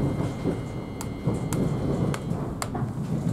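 A train carriage rattles and clicks as it moves.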